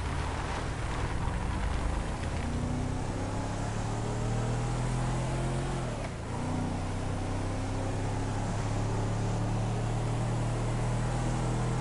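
Tyres rumble on a dusty road.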